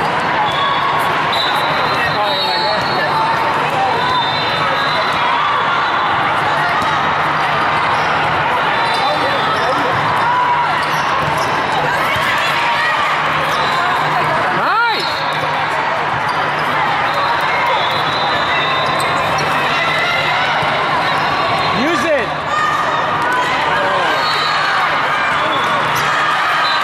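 A volleyball thuds off players' arms and hands.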